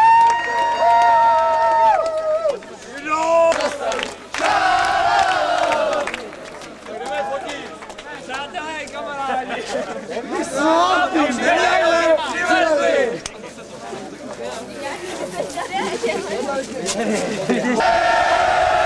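Men sing and shout together in celebration.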